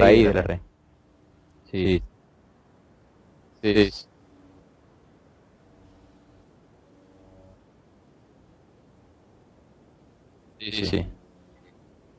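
A man speaks loudly in short bursts through an online call.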